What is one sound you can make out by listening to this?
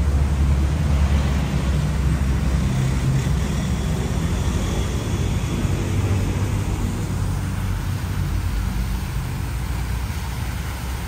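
Water splashes steadily in a fountain, growing louder nearby.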